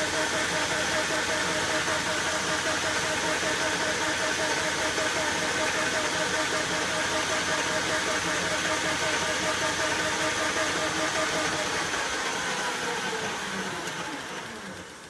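A cutting tool scrapes and hisses against spinning metal.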